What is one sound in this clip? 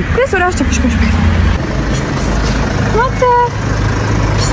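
A woman speaks close to the microphone outdoors.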